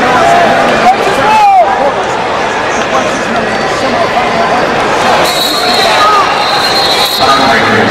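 A large crowd cheers and shouts in a big echoing arena.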